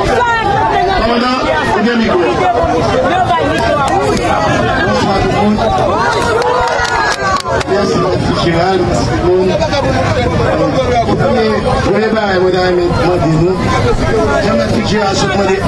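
A crowd of men shouts and argues loudly.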